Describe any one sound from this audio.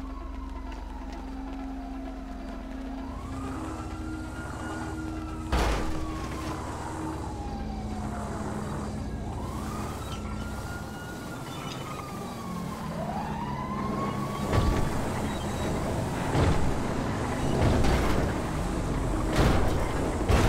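A motor drones steadily, with its pitch shifting up and down.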